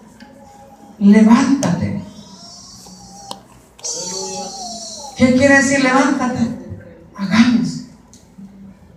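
A young woman speaks with feeling into a microphone, heard through loudspeakers in an echoing hall.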